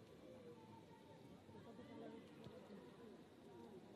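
Young women cheer and chatter excitedly in a crowd.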